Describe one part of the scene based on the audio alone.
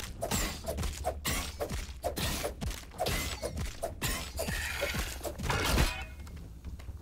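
A spear strikes a giant insect with repeated sharp, crunching hits.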